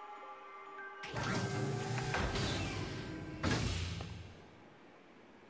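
A lift rumbles and clanks loudly, then stops.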